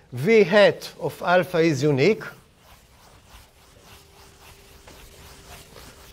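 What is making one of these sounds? A board eraser rubs and swishes across a chalkboard.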